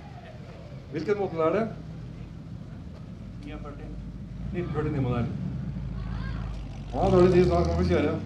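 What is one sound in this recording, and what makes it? A man talks nearby in a calm, conversational voice.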